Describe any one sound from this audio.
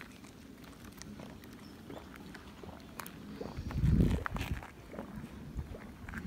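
A young woman gulps water from a plastic bottle.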